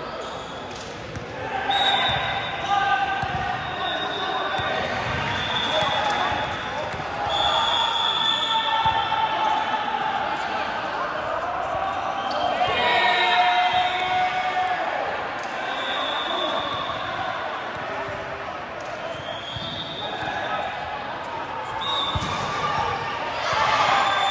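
Young women chatter and shout together in a large echoing hall.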